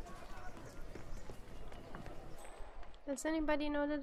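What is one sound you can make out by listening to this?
Footsteps hurry over cobblestones.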